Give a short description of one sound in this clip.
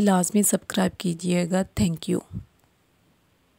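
A woman speaks clearly and with animation, close to a microphone.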